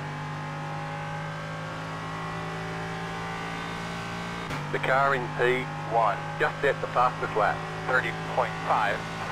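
A racing car engine drones steadily at high revs.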